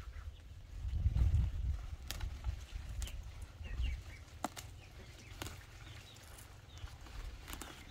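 Leafy plant stems rustle and snap as they are pulled up by hand close by.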